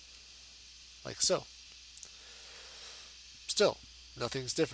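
A young man speaks calmly in short phrases close to a microphone.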